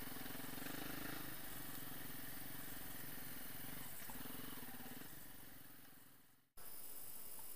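A motorcycle engine drones close by, then fades away.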